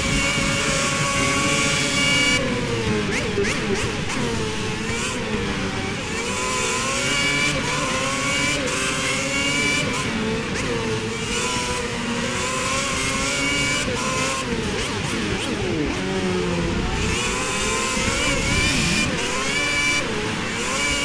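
A racing car engine screams at high revs, rising and dropping in pitch with each gear change.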